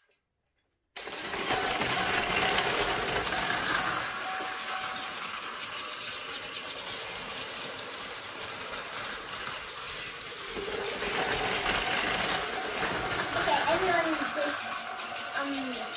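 Battery toy trains whir and rattle along plastic tracks.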